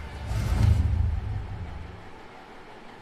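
A sports car engine revs with a deep roar.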